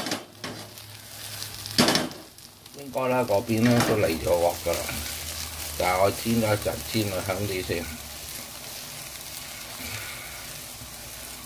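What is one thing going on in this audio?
Food sizzles softly in a frying pan.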